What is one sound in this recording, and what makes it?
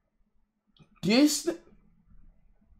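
A young man exclaims loudly and briefly close to a microphone.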